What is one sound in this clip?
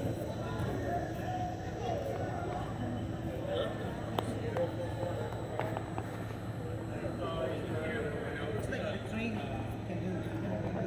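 A tram engine hums steadily nearby.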